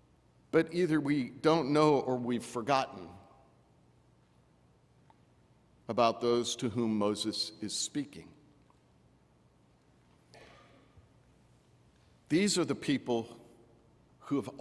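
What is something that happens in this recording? A man speaks slowly and deliberately into a microphone, with pauses, in an echoing hall.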